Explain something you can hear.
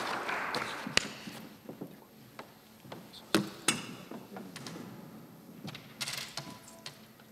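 Footsteps knock on a hard floor in a large echoing hall.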